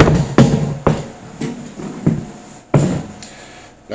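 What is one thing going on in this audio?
Plastic cases knock and thud.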